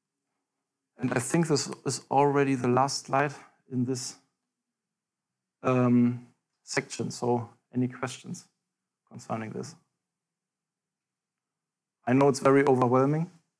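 A young man speaks calmly, in short bursts with pauses.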